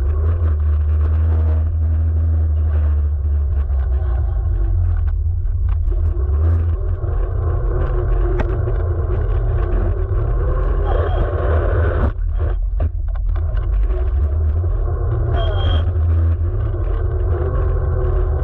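Wind rumbles loudly against a microphone close to the ground.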